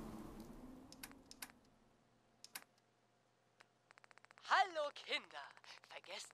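Menu clicks tick in quick succession.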